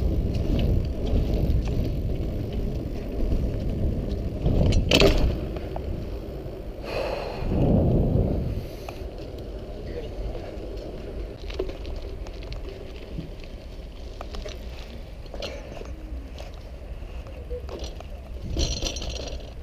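Bicycle tyres roll over paving and dirt.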